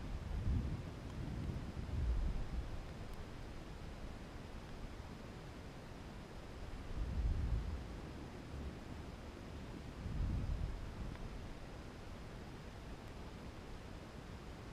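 Wind rumbles and buffets against a microphone in gusts.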